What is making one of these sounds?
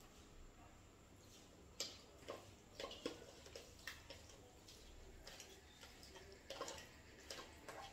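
Powder pours into a metal bowl.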